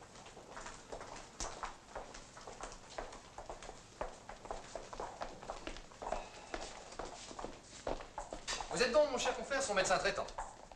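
Footsteps tap on a hard floor in an echoing corridor.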